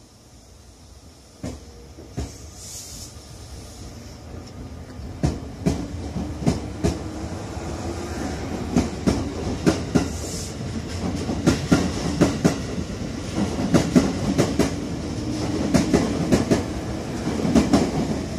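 A train rolls past close by, its wheels clattering rhythmically over rail joints and growing louder.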